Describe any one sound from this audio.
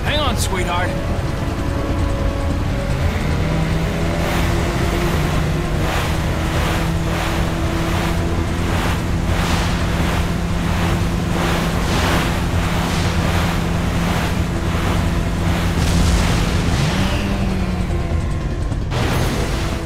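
Water sprays and splashes under a speeding jet ski.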